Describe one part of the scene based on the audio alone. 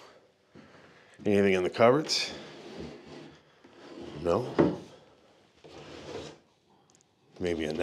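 A metal drawer slides open with a scrape.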